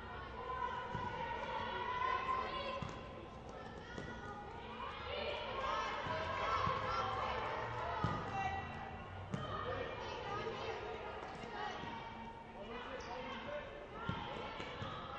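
A ball thuds off a kick on a hard indoor court.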